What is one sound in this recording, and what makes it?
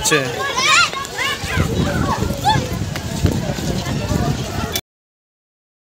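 A group of children chatter and call out as they walk by.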